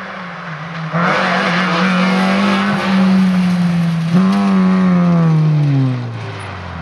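Tyres hiss on asphalt as a rally car speeds past.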